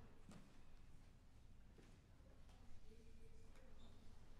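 Sheets of paper rustle.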